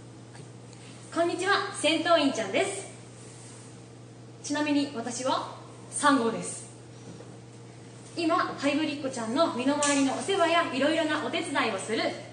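A young woman speaks with animation close by, in short bursts with pauses.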